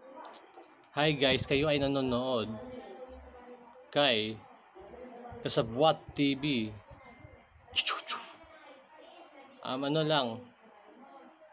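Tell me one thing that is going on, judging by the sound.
A young man talks calmly and close to the microphone, in short bursts with pauses.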